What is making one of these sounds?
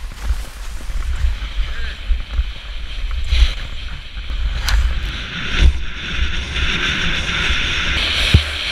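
Skis hiss and scrape over snow, growing louder at speed.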